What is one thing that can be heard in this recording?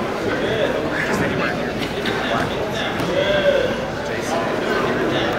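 A crowd of people talks and shouts in a large echoing hall.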